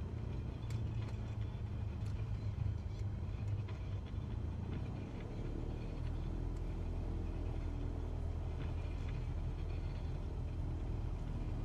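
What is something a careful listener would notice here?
A light aircraft engine hums steadily.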